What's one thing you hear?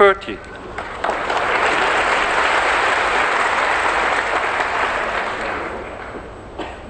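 An audience applauds steadily, then fades.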